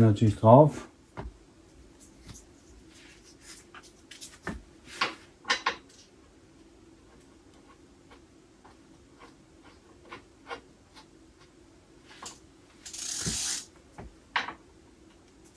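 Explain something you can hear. Small metal parts of a bicycle click and rattle.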